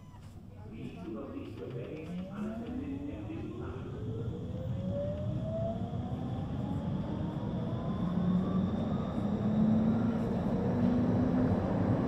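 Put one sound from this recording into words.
A tram's electric motor whines, rising steadily in pitch as the tram speeds up.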